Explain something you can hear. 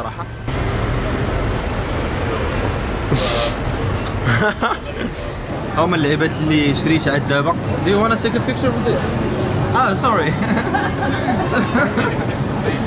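A busy street murmurs in the background.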